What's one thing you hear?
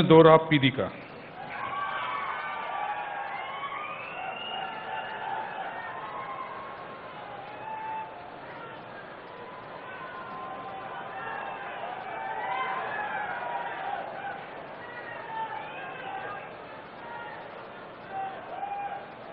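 A crowd of men chatters and murmurs in the background.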